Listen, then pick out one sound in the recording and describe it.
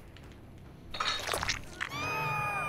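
A blade slashes through flesh with a sharp hit.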